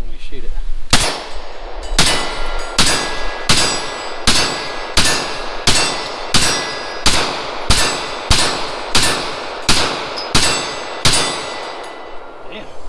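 A pistol fires a steady series of loud shots that ring out outdoors.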